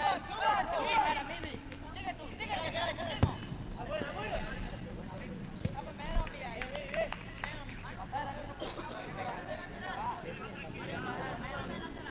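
Young men shout to each other across an outdoor football pitch.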